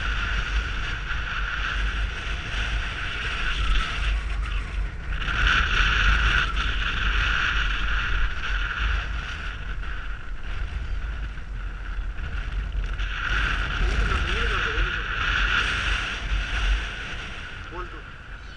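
Wind roars past as a motorcycle rides along.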